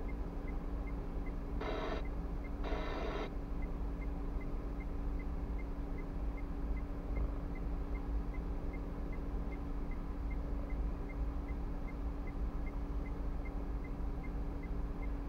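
A car engine idles with a low, steady hum.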